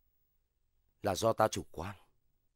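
A man answers loudly, close by.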